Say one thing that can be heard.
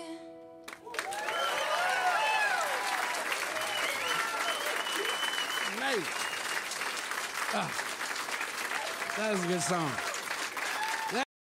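People in an audience cheer and whoop.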